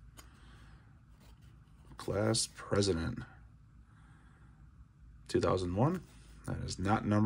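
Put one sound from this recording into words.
Trading cards slide and rustle softly between hands.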